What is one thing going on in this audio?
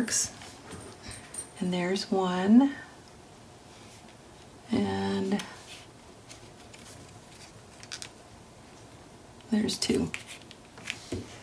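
Paper rustles softly as hands press and smooth it flat.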